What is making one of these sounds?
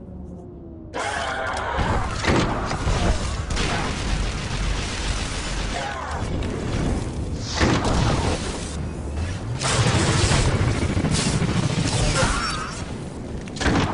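Blaster shots fire rapidly in a game battle.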